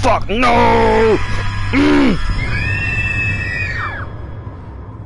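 A creature lets out a loud, shrill scream that fades away.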